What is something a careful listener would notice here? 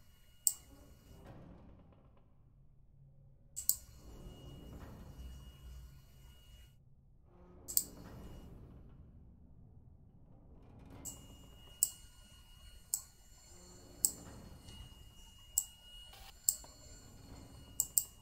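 Small metal pieces click sharply, now and then.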